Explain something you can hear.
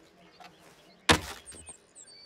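A hammer knocks sharply on wood.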